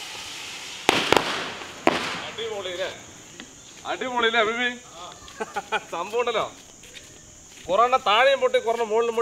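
Fireworks hiss and crackle as they burn.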